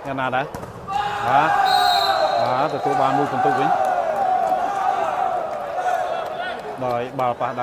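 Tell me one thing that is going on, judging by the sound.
A crowd cheers loudly in a large echoing arena.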